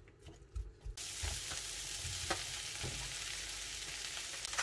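Food sizzles in a hot frying pan.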